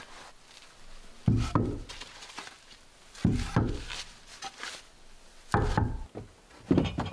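Wooden boards knock and clatter as they are stacked.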